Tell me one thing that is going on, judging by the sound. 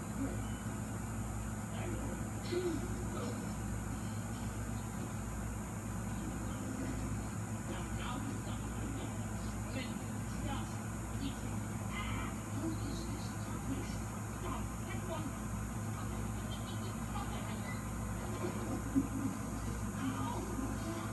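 A cassette player runs with a steady low hum and faint hiss.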